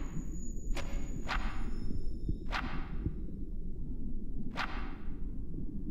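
Pages of a book flip with a papery swish.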